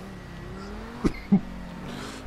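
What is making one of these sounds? A car exhaust pops and backfires loudly.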